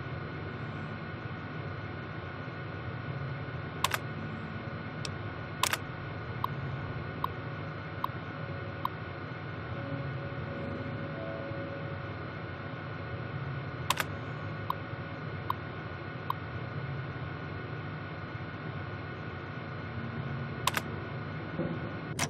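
A low electrical hum drones steadily.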